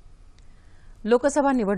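A woman reads out the news clearly through a microphone.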